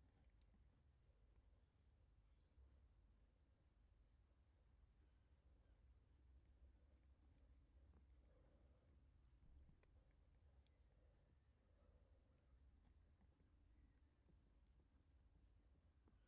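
A cat purrs softly and steadily close by.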